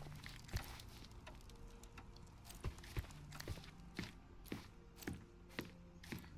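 Footsteps thud on a wooden floor at a steady walking pace.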